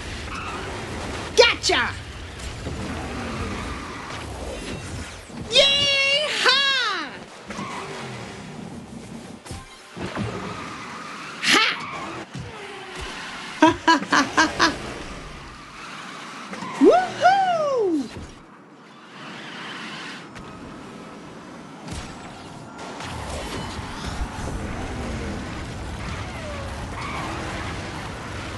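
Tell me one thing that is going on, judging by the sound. A racing kart engine roars steadily at high speed.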